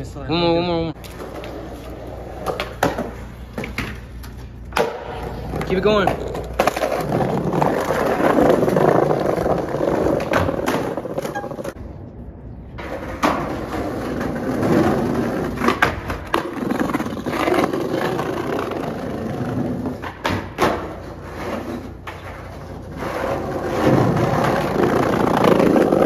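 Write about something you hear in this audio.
Skateboard wheels roll and rumble over paving.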